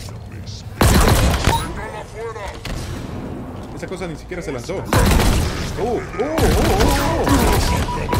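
A heavy energy gun fires in loud, roaring bursts.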